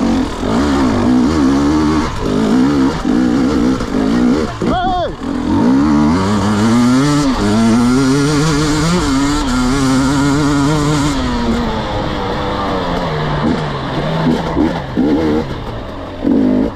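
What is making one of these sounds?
A dirt bike engine revs up and down loudly, close by.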